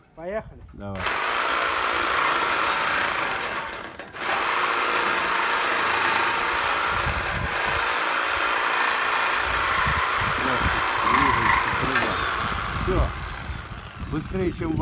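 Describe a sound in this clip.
A reciprocating saw buzzes loudly, cutting through metal pipe.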